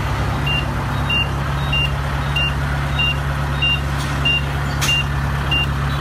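A large diesel engine idles with a steady low rumble.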